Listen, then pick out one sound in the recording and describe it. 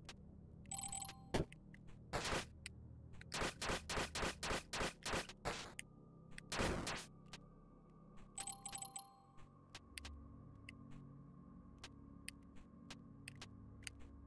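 Retro video game music plays steadily in the background.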